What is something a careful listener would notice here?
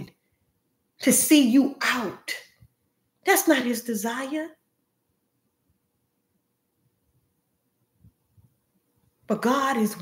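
A young woman speaks calmly and close to a microphone, with pauses.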